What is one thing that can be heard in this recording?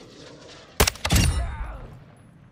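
A rifle fires a loud, sharp shot.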